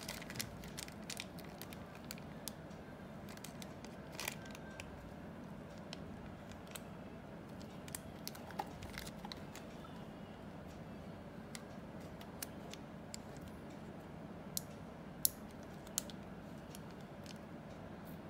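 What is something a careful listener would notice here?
Small plastic clicks and taps come from a handheld radio being handled.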